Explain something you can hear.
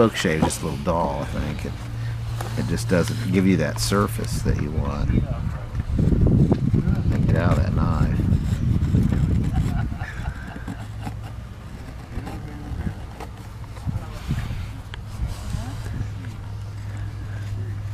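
A knife scrapes and shaves thin curls from a piece of wood.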